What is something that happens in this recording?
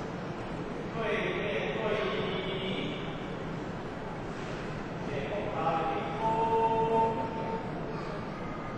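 Voices of a standing crowd chant in an echoing hall.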